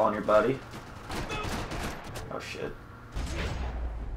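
Gunshots crack in a room.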